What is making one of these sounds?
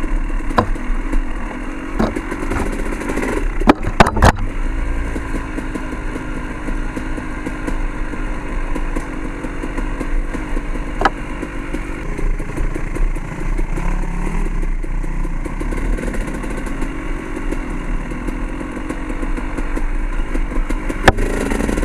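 A dirt bike engine drones steadily up close.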